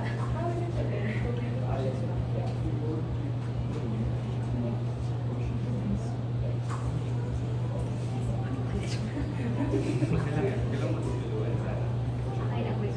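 A young woman laughs nearby.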